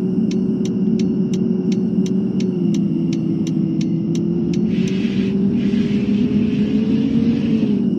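A bus engine drones steadily, its pitch rising slightly.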